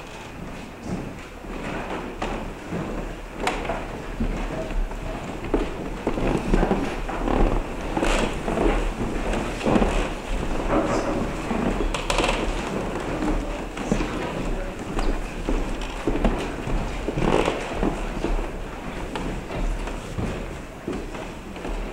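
Footsteps shuffle across a floor in an echoing hall.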